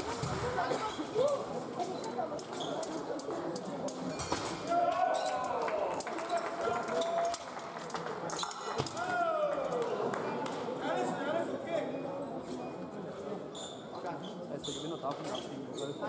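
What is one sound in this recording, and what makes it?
Fencing blades clash and scrape together.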